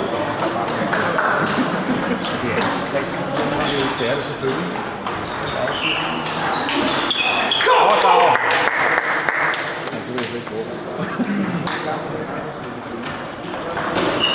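Table tennis balls click sharply against paddles and tables, over and over.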